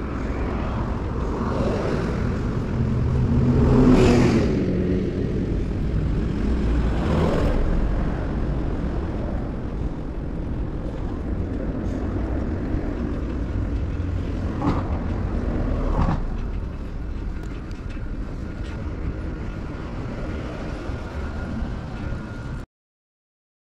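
Traffic hums steadily along a road outdoors.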